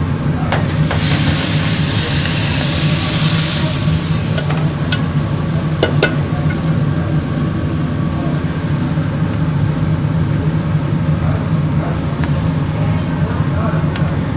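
Meat sizzles loudly on a hot grill.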